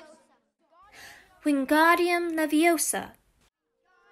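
A young girl speaks clearly and precisely, close by.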